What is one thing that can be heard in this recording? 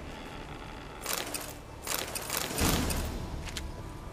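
Small items rustle as they are picked up.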